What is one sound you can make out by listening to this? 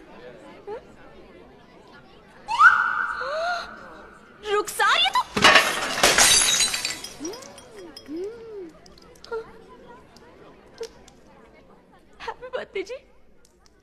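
A young woman speaks pleadingly and emotionally.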